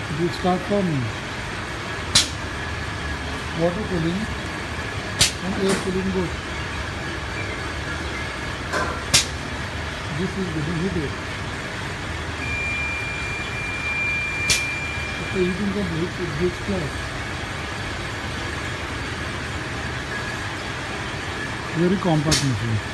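Factory machinery hums steadily.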